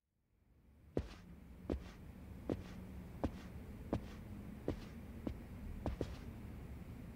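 Footsteps click steadily on a hard floor.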